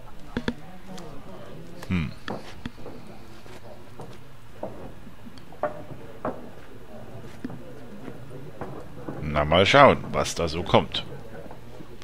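A woman speaks warmly.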